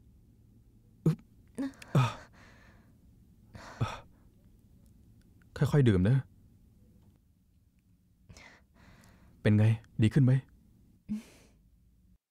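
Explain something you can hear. A young man speaks quietly and gently, close by.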